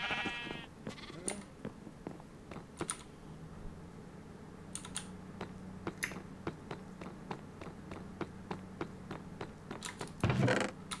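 Footsteps tap steadily on hard ground.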